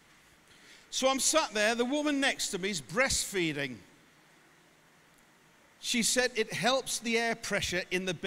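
A man speaks with animation over loudspeakers in a large echoing hall.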